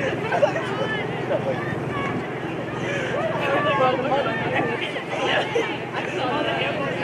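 Many young women's voices chatter and call out close by, outdoors.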